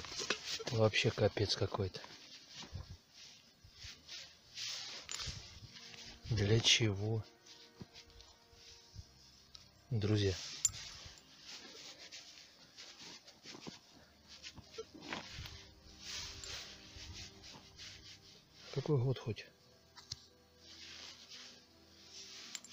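Fingers scrape and dig through dry soil close by.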